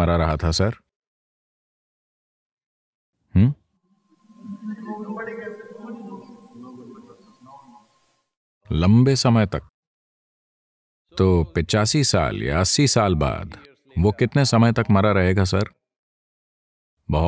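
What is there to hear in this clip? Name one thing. An elderly man speaks calmly and clearly into a close microphone, with pauses between phrases.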